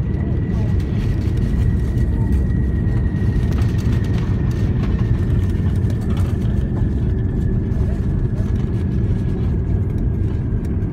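Jet engines roar louder as the airliner brakes on the runway.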